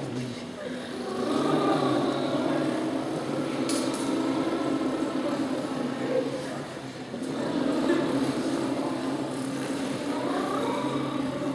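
A choir of young women sings together in a large echoing hall.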